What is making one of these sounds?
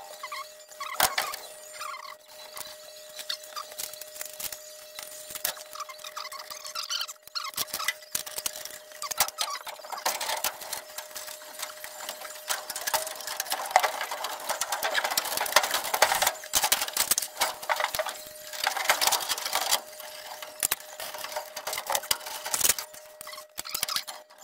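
Metal tools clank and knock.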